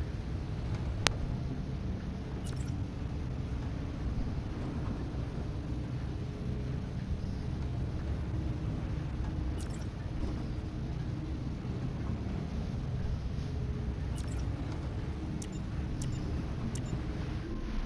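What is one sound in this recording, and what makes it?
Short soft clicks sound as menu options change.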